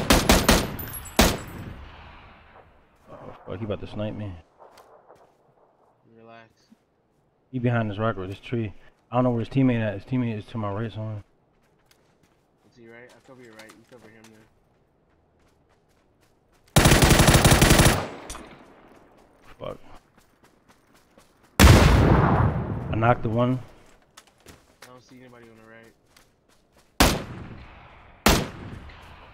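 A rifle fires sharp, loud shots, some in a quick burst.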